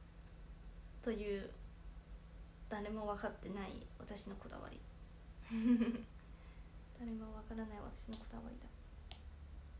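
A young woman speaks softly and haltingly, close by.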